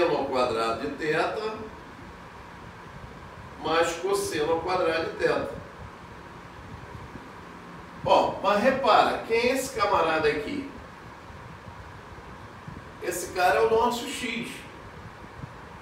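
A man speaks calmly in short phrases, close by.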